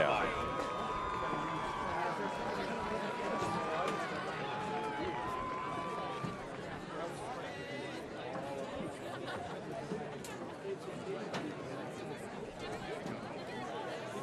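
A large outdoor crowd chatters and cheers in the stands.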